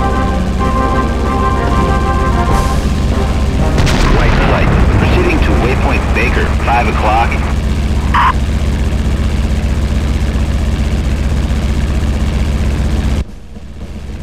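A propeller plane engine drones steadily.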